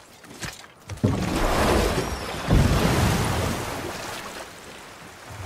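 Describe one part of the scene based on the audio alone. Water splashes loudly as a wooden boat slides in.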